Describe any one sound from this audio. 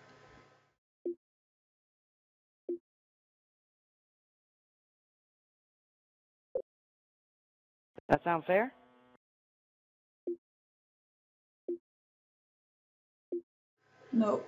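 Short soft menu beeps sound now and then.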